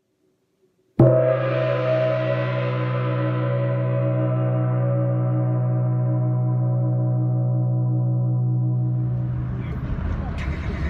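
A large gong is struck and rings with a long, deep, shimmering hum.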